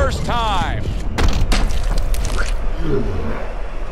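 Gloved punches thud against a body.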